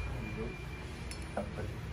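A pen taps lightly against a ceramic vase.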